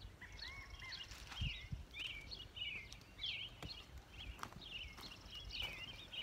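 Footsteps crunch softly on a path.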